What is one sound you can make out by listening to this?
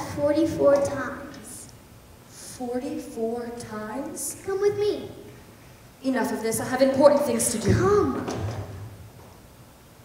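A young girl speaks out expressively in a hall.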